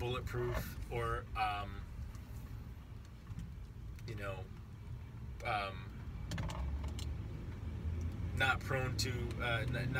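A car engine hums low inside the cabin.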